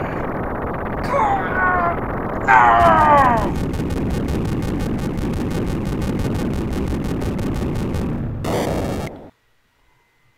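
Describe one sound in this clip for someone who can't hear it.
Video game sound effects chime and whoosh during a boss defeat.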